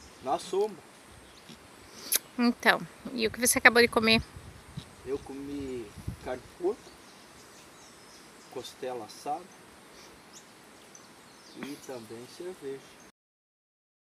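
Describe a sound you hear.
An older man talks casually nearby, in short bursts.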